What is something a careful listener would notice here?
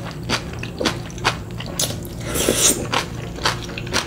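A young woman slurps noodles loudly, close to a microphone.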